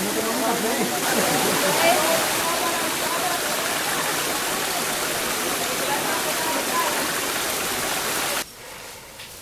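A group of adult men and women chat at a distance.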